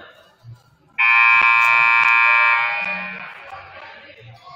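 A scoreboard horn blares loudly for over a second and rings out in the hall.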